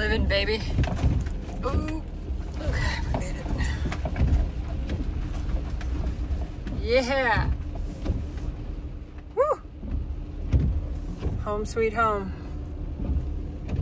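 A windshield wiper swishes across wet glass.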